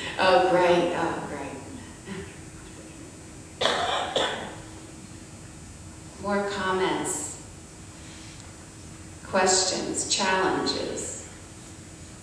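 An older woman speaks calmly into a microphone, with pauses.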